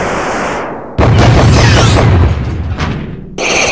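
Several explosions blast in quick succession.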